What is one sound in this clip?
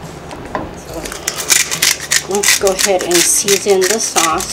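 A pepper grinder grinds with quick rasping bursts.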